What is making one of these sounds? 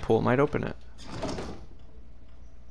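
A wooden drawer slides open with a scrape.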